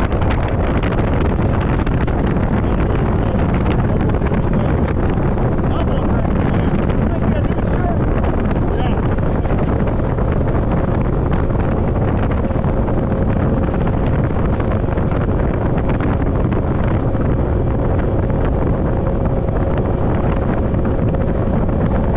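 Strong wind buffets loudly and steadily outdoors.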